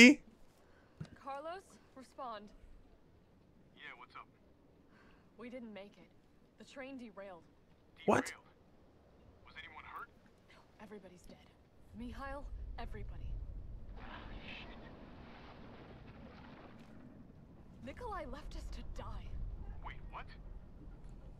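A young woman speaks tensely into a radio, close by.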